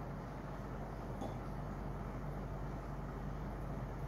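A glass is set down on a table with a light knock.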